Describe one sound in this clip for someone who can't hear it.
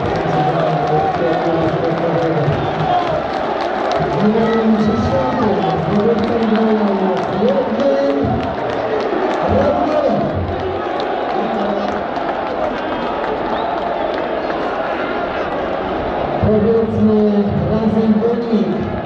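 A large crowd of men chants loudly in unison in an open stadium.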